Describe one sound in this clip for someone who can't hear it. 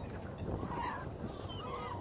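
A flock of ring-billed gulls flaps their wings as they take off.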